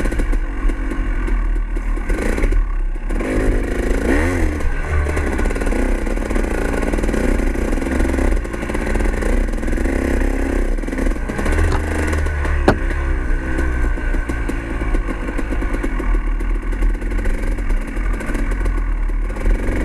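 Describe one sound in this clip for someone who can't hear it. Tyres crunch and rattle over dirt and sticks.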